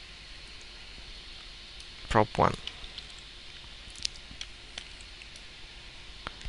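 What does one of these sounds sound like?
Keyboard keys click softly as someone types.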